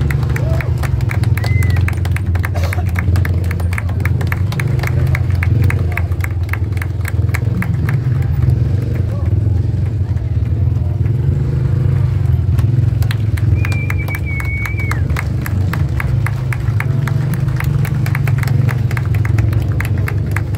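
A motorcycle engine revs loudly and steadily nearby.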